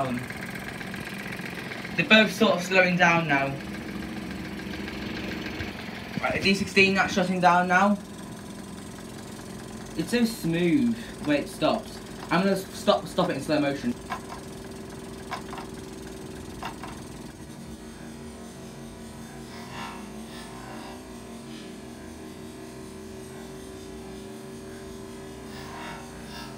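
A small model steam engine runs.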